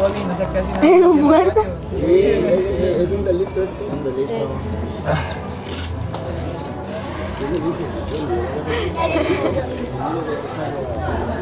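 A young man talks and laughs nearby.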